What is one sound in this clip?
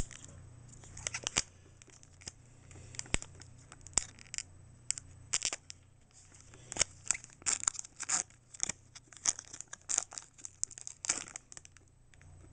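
A foil wrapper crinkles and rustles in someone's hands.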